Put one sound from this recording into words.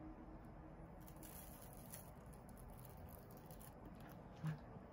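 Bread crust crackles as hands tear a loaf.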